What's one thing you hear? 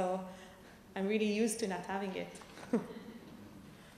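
A woman speaks and laughs into a microphone.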